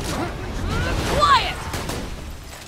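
An energy blast bursts with a sharp whoosh.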